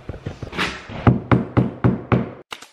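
A mallet knocks sharply on a floorboard several times.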